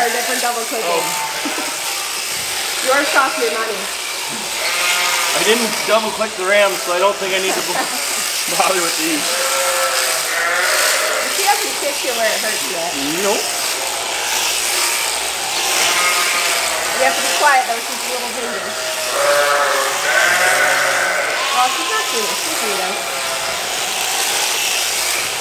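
Electric shears buzz steadily through a sheep's fleece.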